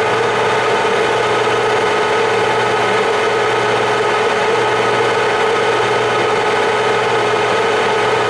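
A metal shaft spins in a machine with a steady, loud mechanical hum and whine.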